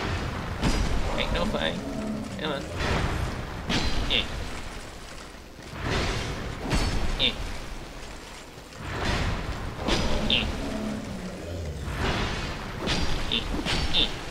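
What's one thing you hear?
A sword strikes in a fight with clanging hits.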